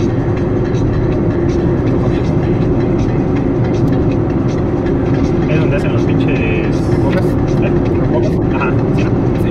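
A car drives at speed, its tyres rumbling on asphalt.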